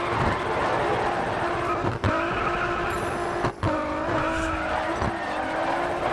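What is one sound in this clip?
A racing car engine roars at high revs, with brief dips at gear changes.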